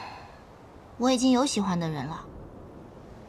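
A young woman speaks softly and close.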